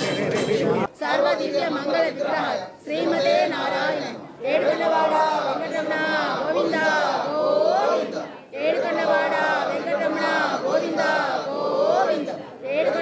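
A man chants prayers nearby.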